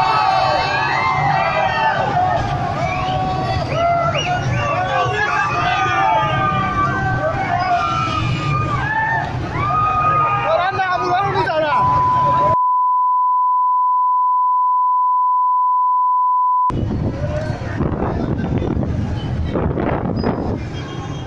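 A crowd of men and women shout and chant loudly outdoors nearby.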